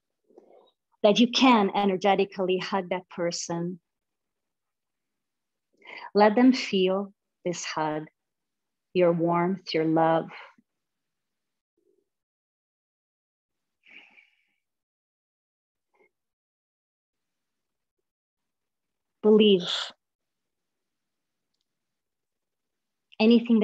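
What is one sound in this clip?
A woman speaks calmly into a close microphone, with pauses.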